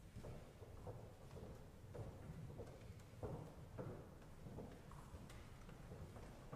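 Footsteps echo slowly through a large, reverberant hall.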